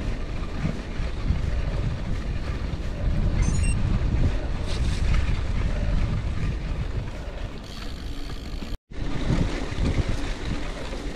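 Wind rumbles loudly past a cyclist outdoors.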